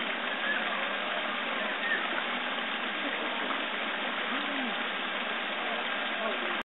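Fish splash softly at the surface of a pond.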